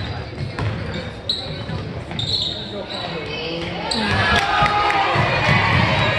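Players and spectators shout and call out in a large echoing gym.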